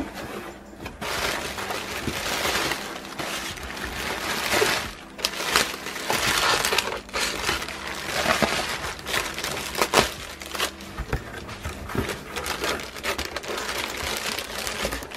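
Plastic packing crinkles and rustles under a hand.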